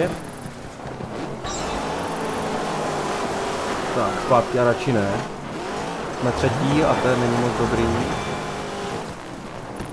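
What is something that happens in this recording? A rally car engine revs and roars.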